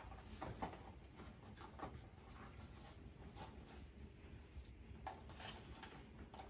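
Paper rustles as it is unwrapped.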